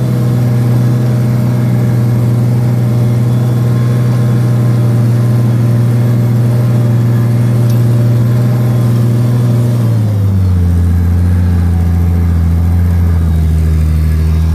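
A disc harrow rattles over ploughed soil.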